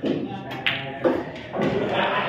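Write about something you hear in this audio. Pool balls clack together.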